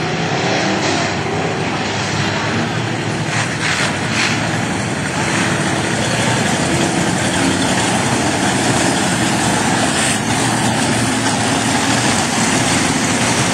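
Race car engines roar loudly as cars speed past close by.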